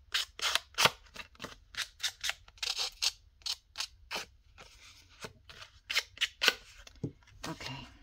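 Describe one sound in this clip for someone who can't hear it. A glue brush dabs and scrapes on paper.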